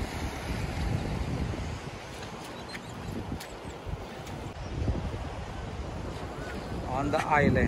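Small waves wash onto a sandy beach.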